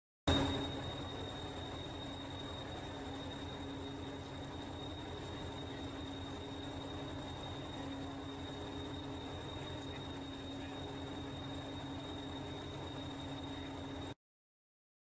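A diesel locomotive engine idles with a steady low rumble and drone.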